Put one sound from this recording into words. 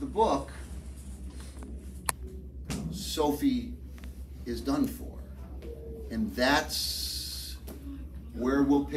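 A middle-aged man speaks with animation, close by.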